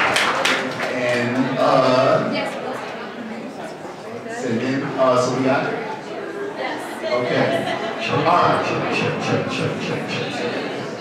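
A young man speaks animatedly into a microphone.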